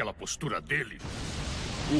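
A magical blast roars with a loud rushing hiss.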